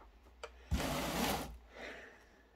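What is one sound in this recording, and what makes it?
A cardboard box thumps down onto a wooden floor.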